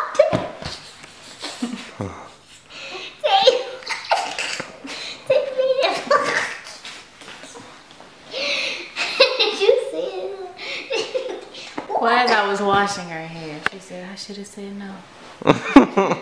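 A young girl laughs and giggles nearby.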